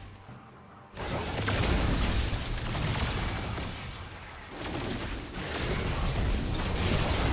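Magical spell effects whoosh and crackle during a fight.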